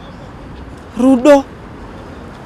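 A young woman shouts a name sharply.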